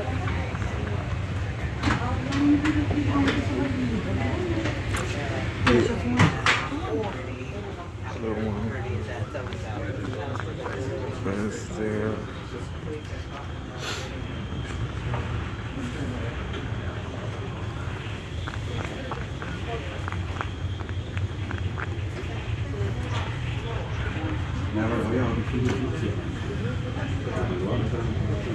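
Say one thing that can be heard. Wind blows across the deck.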